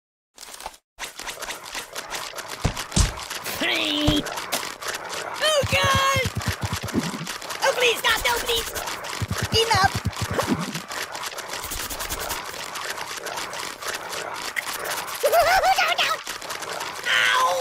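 Rapid soft thuds of blows land on a cartoon figure.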